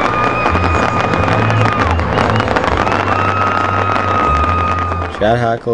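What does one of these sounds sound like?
Fireworks crackle and fizz rapidly overhead.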